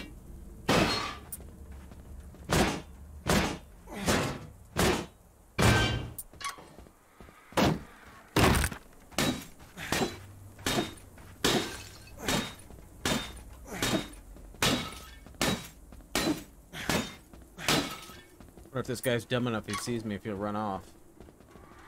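Gunshots ring out one after another, each sharp and loud.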